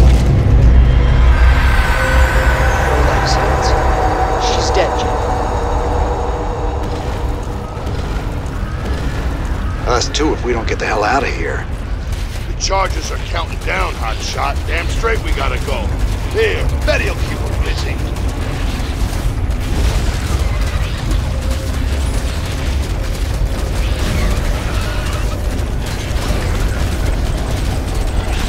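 Low, rumbling battle noise from a game plays steadily.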